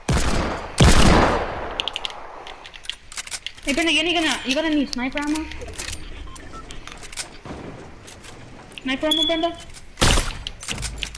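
A gun fires in a video game.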